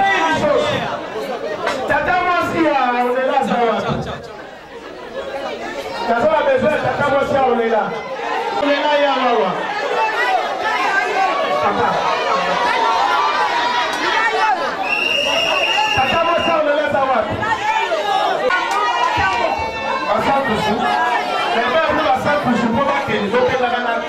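A man talks loudly with animation through a microphone, heard over a loudspeaker.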